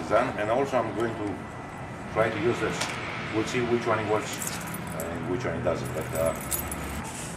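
A man talks calmly, close by.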